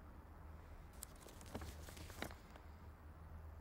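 A sheet of paper rustles and crackles.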